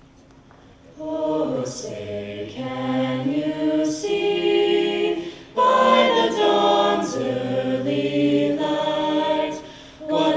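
A choir of young men and women sings together in a large echoing hall.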